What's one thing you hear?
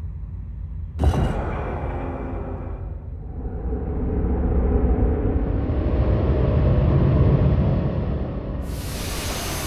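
Stone grinds and rumbles as a panel slides open.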